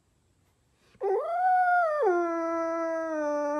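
A dog whines in a long, falling tone.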